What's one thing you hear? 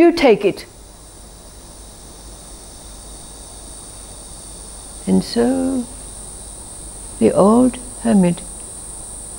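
An elderly woman speaks slowly and calmly into a close microphone, with long pauses.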